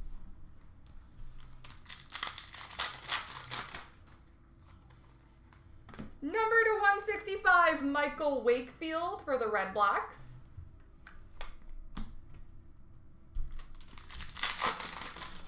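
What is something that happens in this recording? Cards rustle and shuffle as a hand sorts through a box.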